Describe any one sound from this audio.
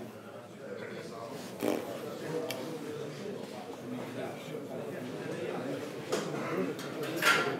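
Several men talk quietly in the background of an indoor room.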